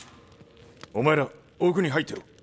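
A man calls out loudly and urgently.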